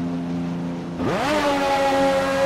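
A racing car engine revs up sharply and roars loudly.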